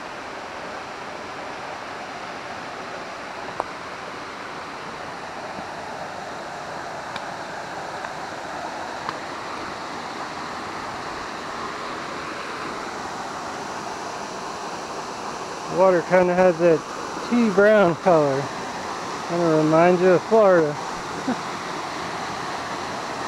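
Water in a stream rushes steadily nearby.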